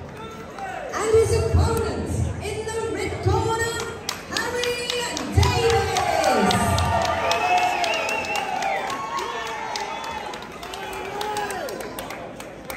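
A woman announces loudly through a loudspeaker, echoing in a large hall.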